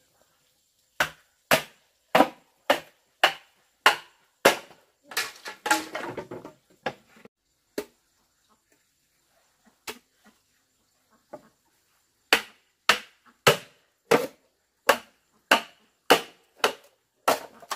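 A machete chops into bamboo with sharp, repeated knocks.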